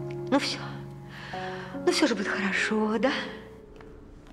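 A middle-aged woman speaks quietly and earnestly, close by.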